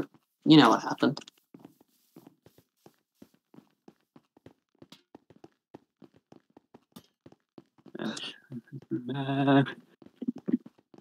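Footsteps tap steadily on ice.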